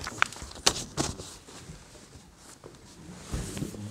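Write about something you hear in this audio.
A pen scratches on paper close by.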